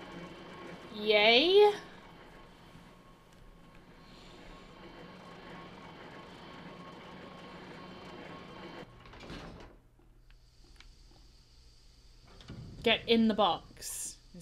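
A heavy metal door creaks open slowly.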